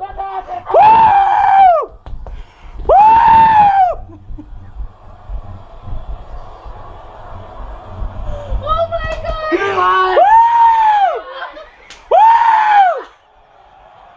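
A man close by makes long, wavering howling sounds with his voice, again and again.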